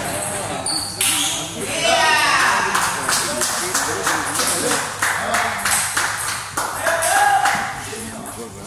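A man cheers loudly after a point.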